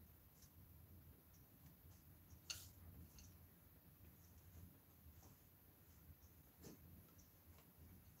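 Light plastic parts tap and knock softly against a table close by.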